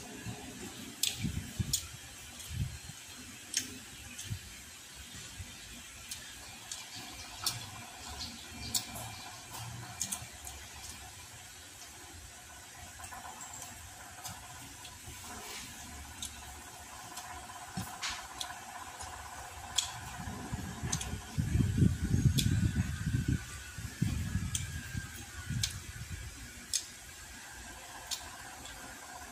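Fingers tap and scrape on a plate with small clicks.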